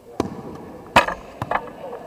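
A bat cracks against a ball in a large echoing hall.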